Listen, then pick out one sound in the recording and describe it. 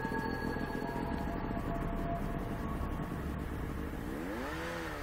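A snowmobile engine idles with a low rumble.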